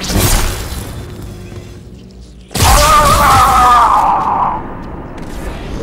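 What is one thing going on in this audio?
An energy sword swings with a humming whoosh.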